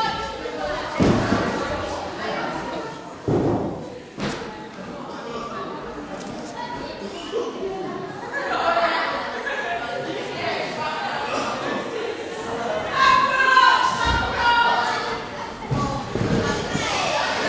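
Feet thud on a canvas wrestling ring.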